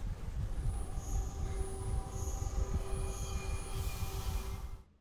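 A bright magical chime shimmers.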